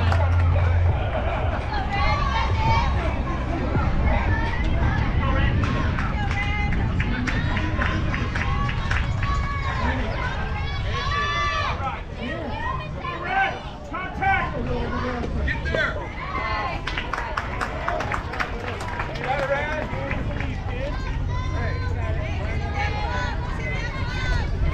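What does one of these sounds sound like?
Young girls shout and cheer from close by.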